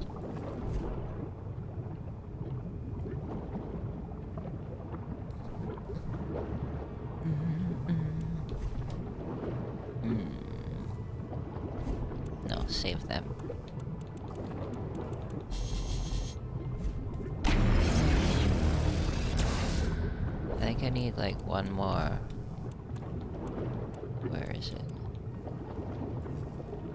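A low magical hum drones steadily.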